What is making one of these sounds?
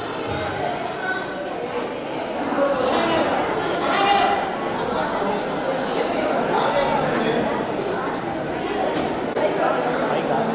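A crowd of women and children chatter in an echoing hall.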